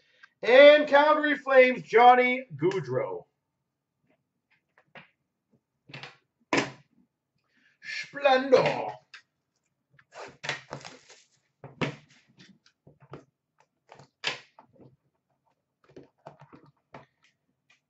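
Hands handle small cardboard boxes with soft taps and scrapes.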